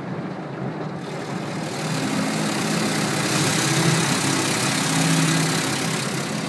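Water and foam spray and rush against a car window, growing louder.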